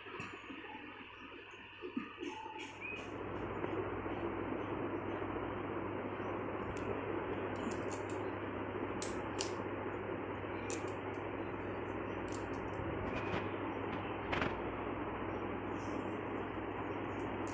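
Hands rustle through long hair.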